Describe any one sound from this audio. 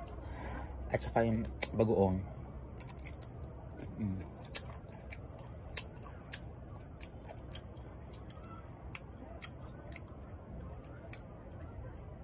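A young man crunches on crisp fruit, chewing loudly.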